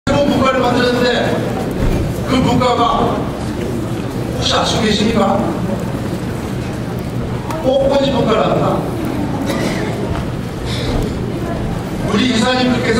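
An older man gives a speech with animation through a microphone and loudspeakers in a large echoing hall.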